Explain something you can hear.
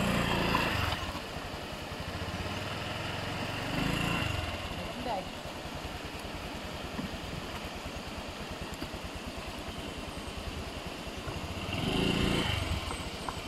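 Shallow water splashes around a scooter's wheel.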